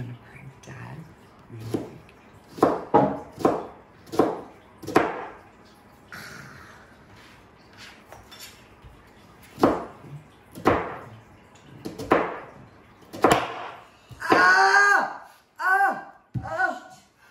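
A knife chops onions on a cutting board.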